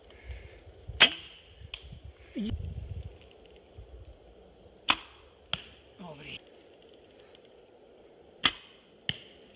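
A bowstring snaps sharply as an arrow is released.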